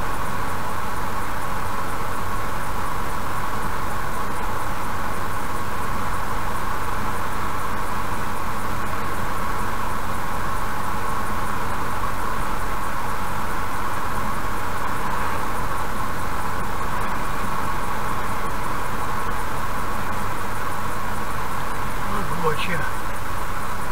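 A car engine hums steadily at highway speed.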